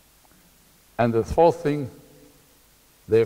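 A middle-aged man speaks in short bursts.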